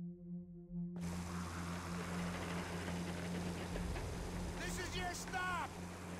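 A small plane's engine drones loudly and steadily.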